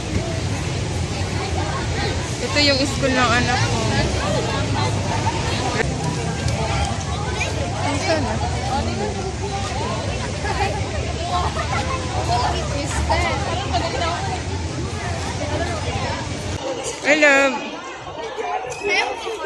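A crowd of young people chatter all around outdoors.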